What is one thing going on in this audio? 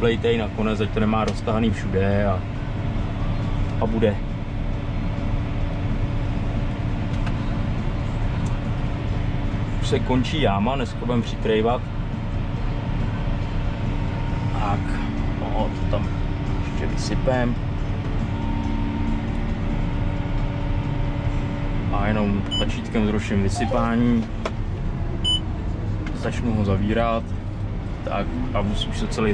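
A tractor engine hums steadily from inside the cab.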